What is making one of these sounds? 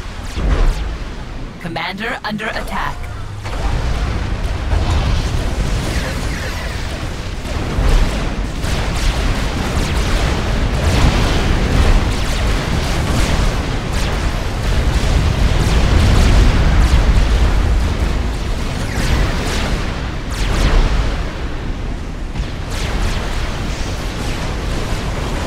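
Explosions boom and rumble again and again in a battle.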